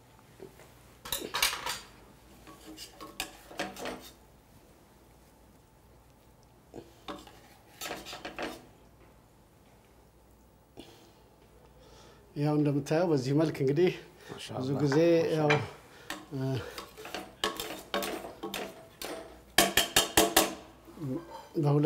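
Metal tongs clink and scrape against a pot and a plate.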